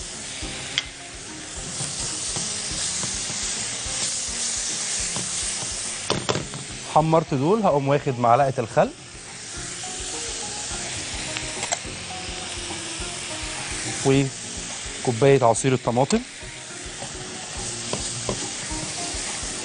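Oil sizzles and bubbles in a frying pan.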